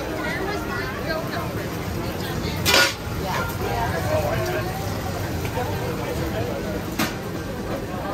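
Metal tongs clink against a hot grill.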